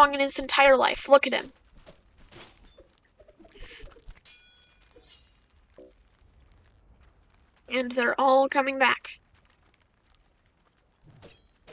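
Magic blades whoosh and clang in a game battle.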